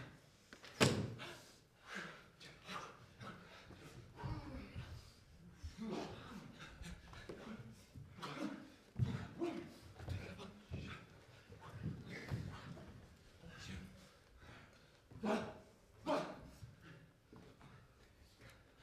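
Bare feet thud and shuffle on a floor.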